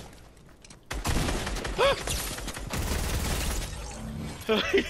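A gun fires loud rapid bursts.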